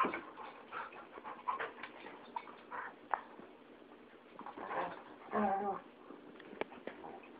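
A dog's paws scuffle and thump on the floor.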